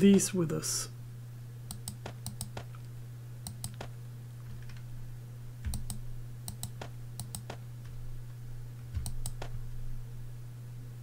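Short soft clicks sound as items are moved around.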